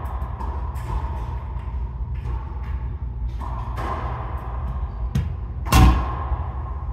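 A racquetball smacks hard off the walls of an echoing court.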